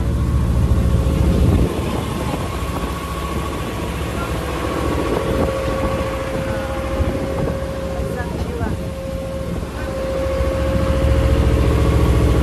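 Wind blows outdoors across open water.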